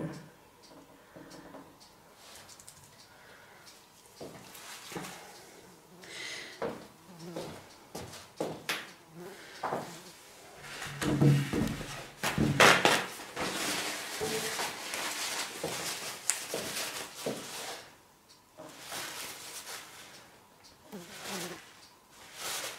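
Plastic sheeting crinkles and rustles under gloved hands.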